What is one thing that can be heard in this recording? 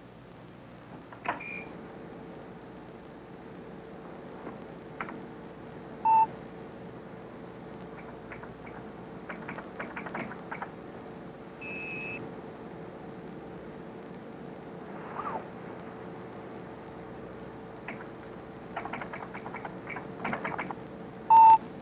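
Computer keys click as a man types in quick bursts.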